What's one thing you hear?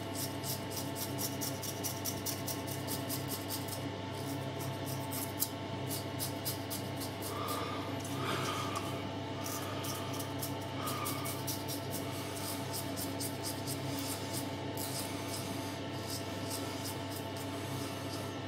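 A razor scrapes through stubble close by.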